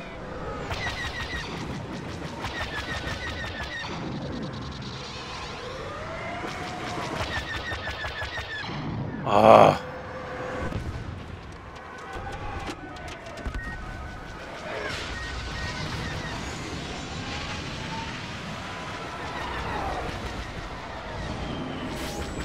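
Starfighter engines roar and whine steadily.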